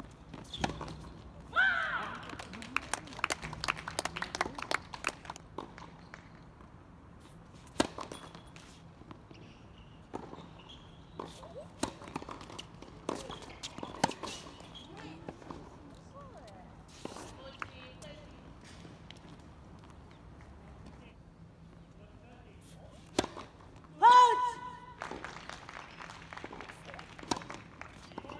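Tennis balls are struck with rackets with sharp pops.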